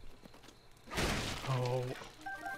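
A wooden crate smashes apart with a dusty burst.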